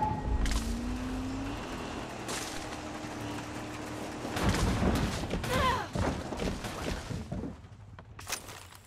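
A car engine runs and rumbles over rough ground.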